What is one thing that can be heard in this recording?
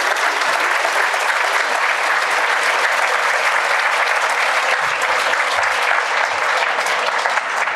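An audience applauds steadily in a large room.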